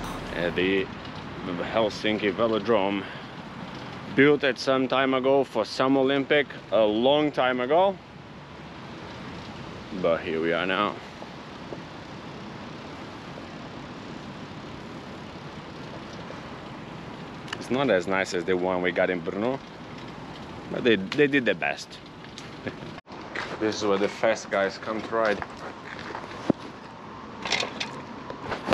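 A man talks with animation close to a microphone, outdoors.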